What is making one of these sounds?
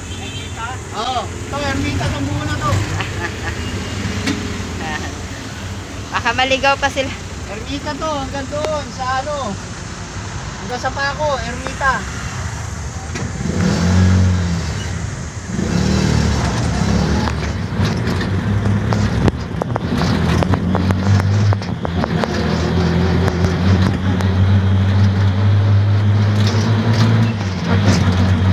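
A motorcycle engine drones steadily and grows louder as the ride speeds up.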